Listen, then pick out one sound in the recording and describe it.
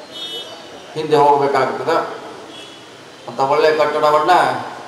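A man speaks loudly and firmly into a microphone, his voice carried by loudspeakers.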